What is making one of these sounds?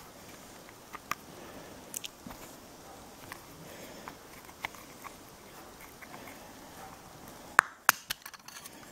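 A small plastic case clicks and snaps as it is pried open.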